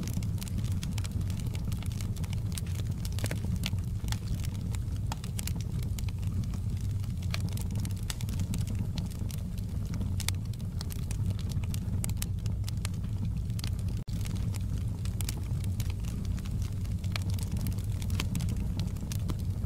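Burning logs crackle and pop.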